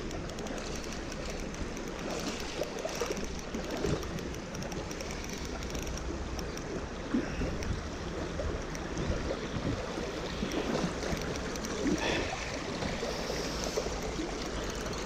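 A shallow stream rushes and splashes over stones close by.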